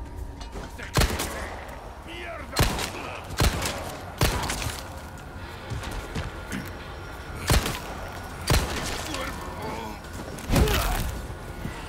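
Gunshots bang loudly several times.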